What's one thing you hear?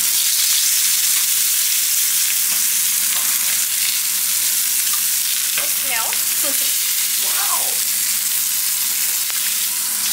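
Meat sizzles loudly in a hot frying pan.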